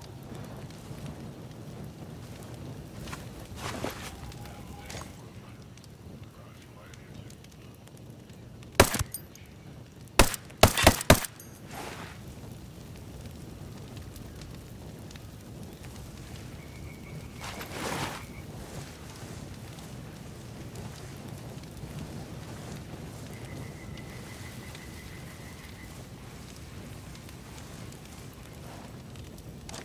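A fire crackles and burns steadily.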